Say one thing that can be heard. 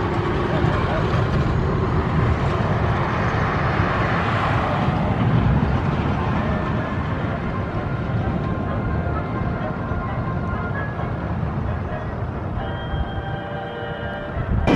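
A roller coaster train rumbles and rattles along its track in the distance.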